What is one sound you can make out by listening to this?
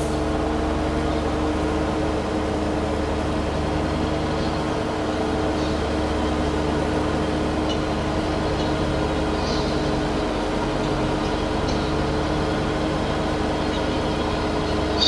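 A mower whirs as it cuts grass.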